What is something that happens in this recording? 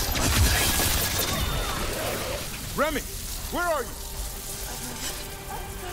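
Magic blasts crackle and weapons clash in a fight.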